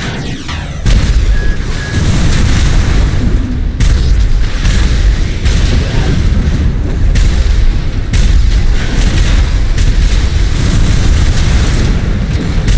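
Heavy gunfire booms in rapid bursts.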